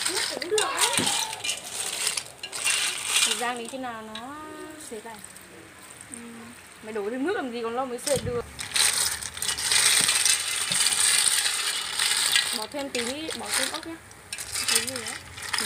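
Snail shells clatter as chopsticks stir them in a metal pot.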